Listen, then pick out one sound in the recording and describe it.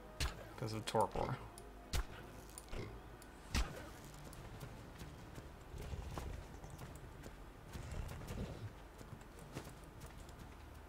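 Footsteps tread on rocky ground.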